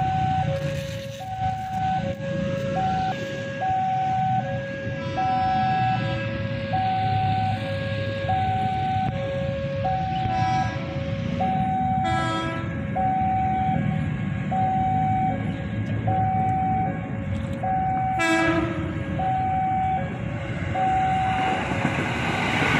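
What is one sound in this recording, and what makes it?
A level crossing bell rings in a steady two-tone pattern.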